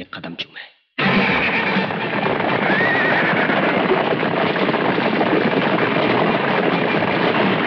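Horses gallop over dry ground.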